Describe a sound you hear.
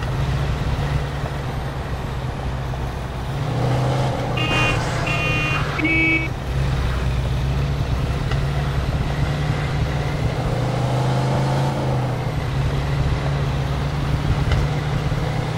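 A car engine hums steadily, revving up and down.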